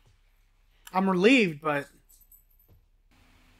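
A girl speaks quietly.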